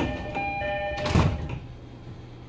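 Train doors slide shut with a heavy thud.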